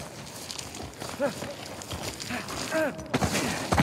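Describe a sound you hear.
A man lands heavily on stones with a thud.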